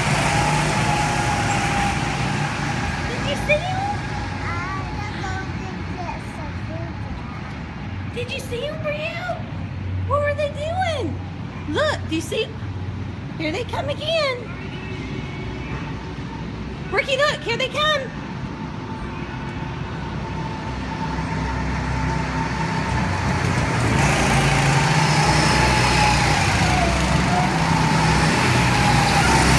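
Go-kart engines whine and buzz around a track.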